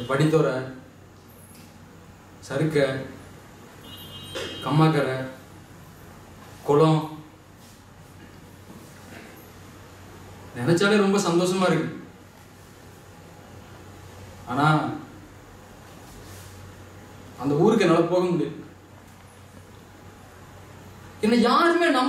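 A man speaks loudly in short bursts, with pauses between them.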